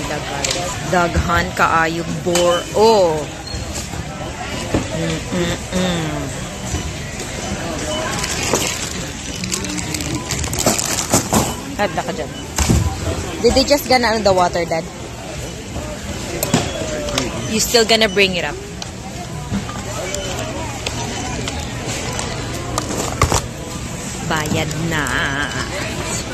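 A crowd murmurs and chatters in a busy indoor space.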